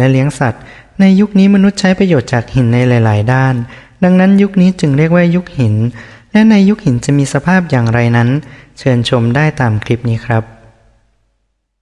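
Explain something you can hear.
A young man speaks calmly and steadily, close to a microphone.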